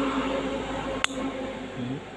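A plastic wire connector snaps into place with a sharp click.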